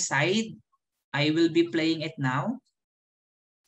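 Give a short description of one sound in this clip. A man speaks calmly through a microphone in an online call.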